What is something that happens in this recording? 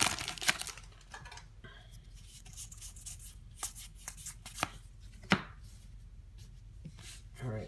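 Playing cards slide and click against each other as hands shuffle through them.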